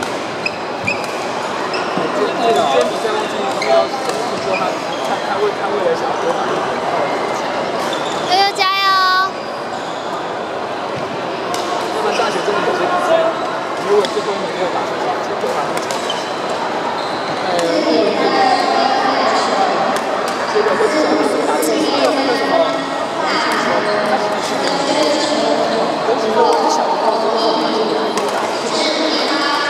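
Many voices chatter and call out through a large echoing hall.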